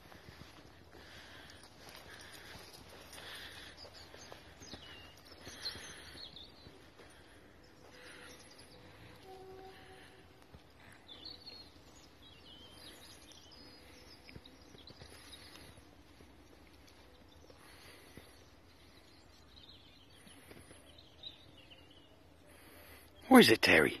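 A small dog's paws patter softly over gravel.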